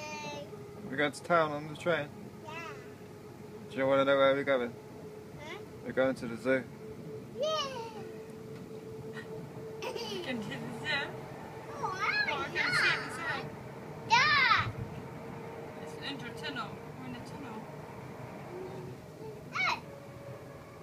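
A young girl talks and squeals excitedly close by.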